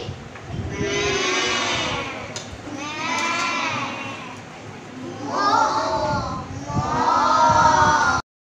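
A young girl reads out loud in a clear, drawn-out voice, close by.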